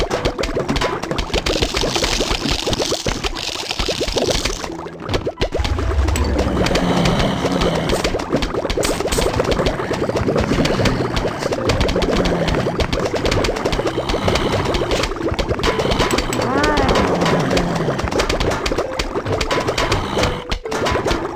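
Cartoon zombies groan and shuffle forward.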